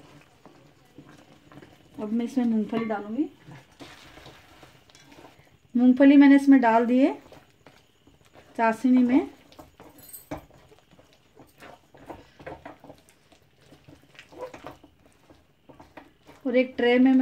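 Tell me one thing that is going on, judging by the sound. A wooden spatula scrapes and stirs food in a metal pan.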